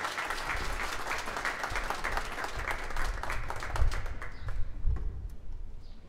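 An audience applauds outdoors, then the clapping fades.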